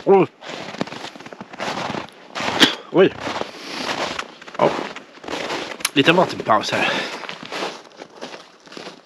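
A middle-aged man talks close to the microphone.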